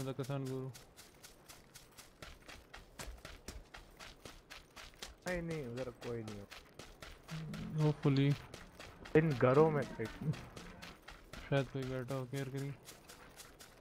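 Footsteps run quickly and steadily over the ground.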